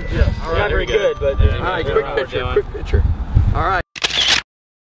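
A group of adult men and women call out together nearby, outdoors.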